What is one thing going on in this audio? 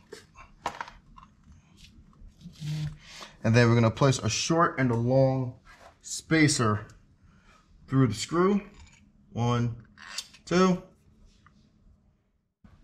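Small metal parts clink and click softly as hands handle them.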